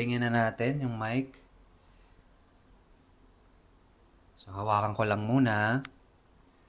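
A young man speaks calmly and close up, in short phrases with a pause between.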